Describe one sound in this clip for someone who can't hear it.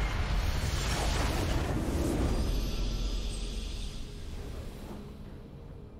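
A triumphant victory fanfare plays.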